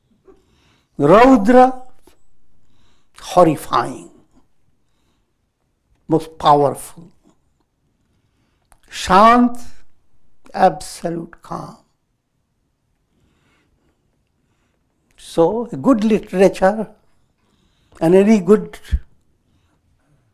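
An elderly man speaks calmly in short phrases with pauses, close to a clip-on microphone.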